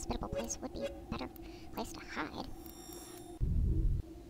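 Menu selections click and chime.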